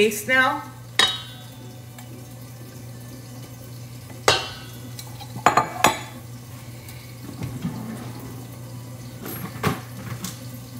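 A spoon scrapes and clinks against a metal bowl.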